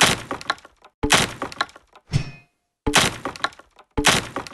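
A brick wall crashes and bricks tumble.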